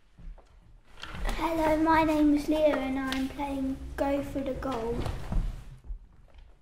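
A young boy speaks clearly in an echoing hall.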